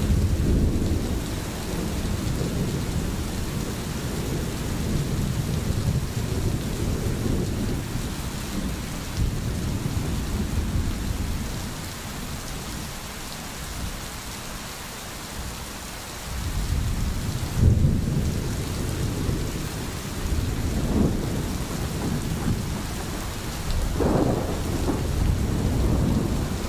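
A stream gurgles over stones.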